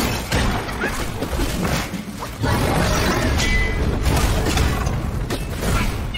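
Fire bursts and crackles loudly.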